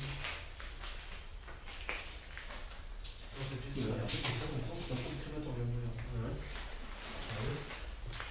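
Footsteps scuff on a gritty floor.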